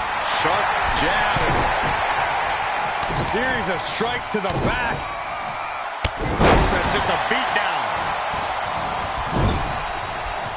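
Heavy thuds land as wrestlers strike each other.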